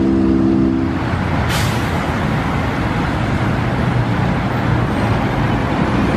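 An articulated diesel bus rolls past.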